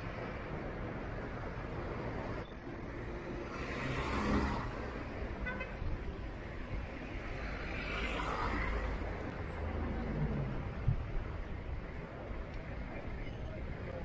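Outdoor street noise hums steadily.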